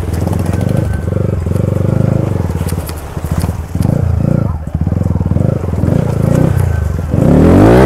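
Water splashes under a motorcycle's wheels.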